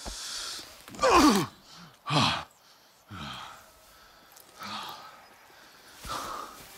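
A young woman speaks in short, strained bursts close by.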